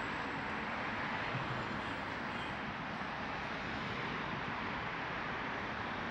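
A scooter passes by on the road.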